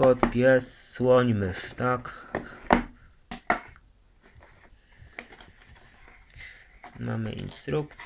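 A cardboard box lid slides and taps against a table.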